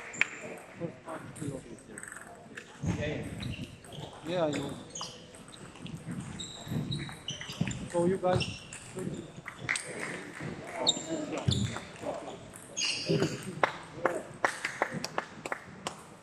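A table tennis ball clicks off paddles and bounces on a table in an echoing sports hall.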